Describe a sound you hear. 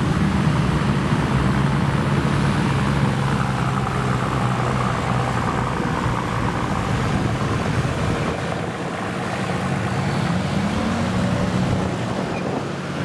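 An off-road 4x4 engine labours under load as it climbs a slope.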